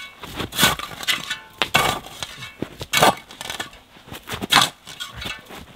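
A shovel scrapes through snow and gravel.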